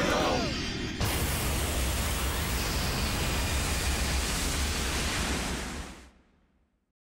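A loud magical burst roars and hisses, then fades away.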